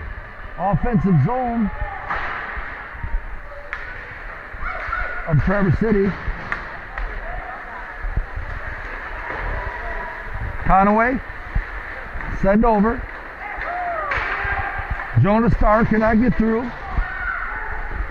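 Ice skates scrape and hiss across ice.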